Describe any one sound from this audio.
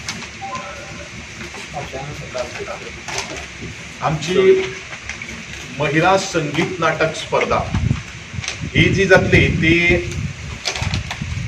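A man speaks calmly into a microphone, reading out and explaining.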